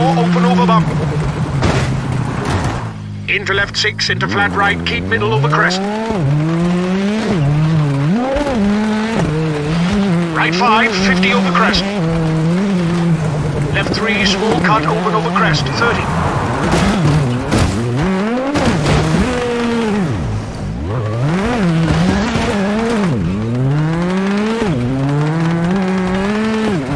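A rally car engine revs hard and shifts gears.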